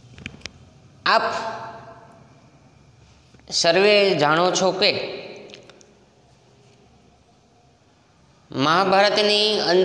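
A man speaks clearly and steadily in a room with a noticeable echo.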